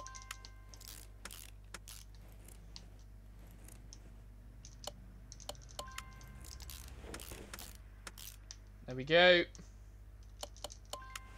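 Short electronic beeps sound from a menu.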